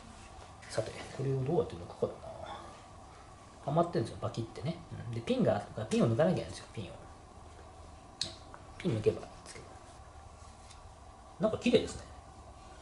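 A middle-aged man talks calmly nearby.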